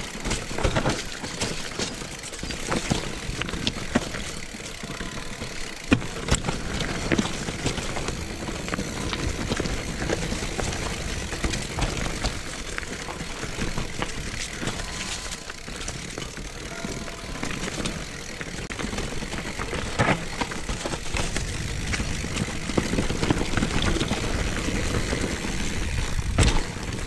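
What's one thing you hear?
Bicycle parts clatter and knock over bumps.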